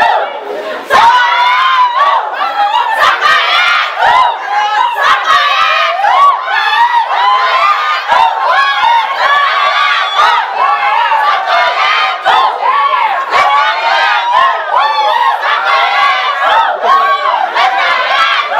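A group of women sing loudly together close by.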